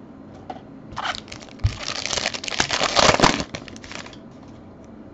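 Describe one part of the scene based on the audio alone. A foil wrapper crinkles and tears open close by.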